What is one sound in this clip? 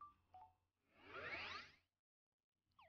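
A quick rising electronic swoosh plays.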